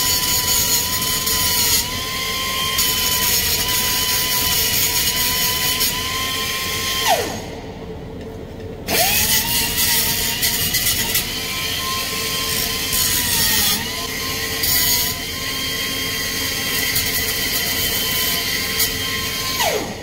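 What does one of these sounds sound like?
An angle grinder whines loudly as it grinds metal, stopping briefly and then starting again.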